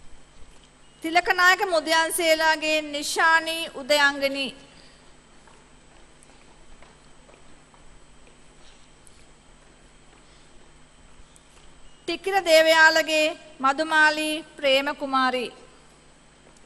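A woman reads out through a loudspeaker in a large hall.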